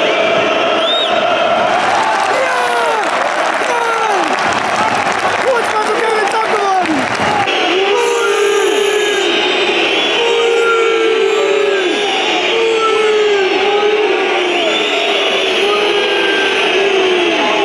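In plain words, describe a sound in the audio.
A large crowd roars and chants in an open stadium.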